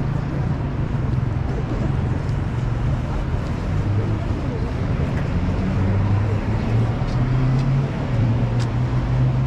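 Low city traffic rumbles steadily in the background.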